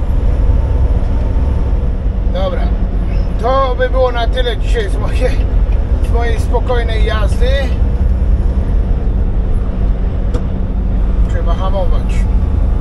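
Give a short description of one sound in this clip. Tyres rumble on a highway.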